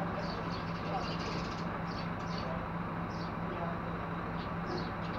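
A truck engine idles with a steady low hum.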